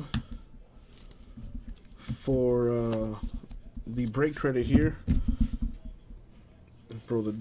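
Plastic card cases clack and rustle as they are handled.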